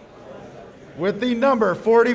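A man speaks loudly and clearly nearby.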